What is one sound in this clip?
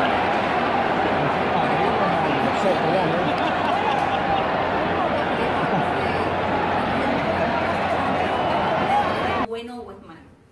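A large stadium crowd roars and chants loudly in a wide open space.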